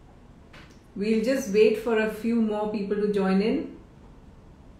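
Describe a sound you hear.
A woman speaks warmly and close to a microphone.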